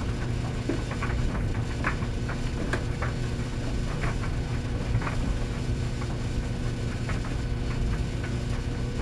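Clothes thump and knock as they tumble inside a dryer drum.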